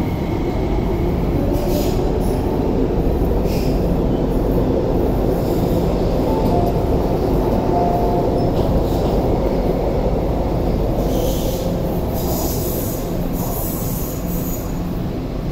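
A train rumbles steadily along the track close by.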